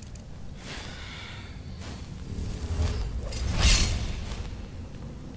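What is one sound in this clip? A magic spell crackles and bursts with a loud whoosh.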